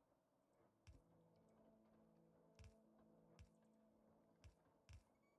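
Machines hum steadily.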